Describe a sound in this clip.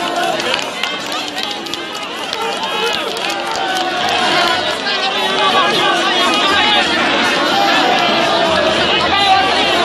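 A large crowd of men and women talks and shouts excitedly all around.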